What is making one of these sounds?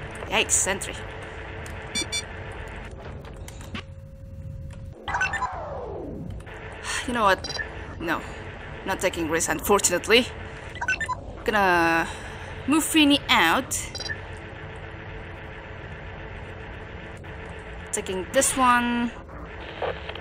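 Electronic robotic chirps and warbling bleeps sound in short bursts.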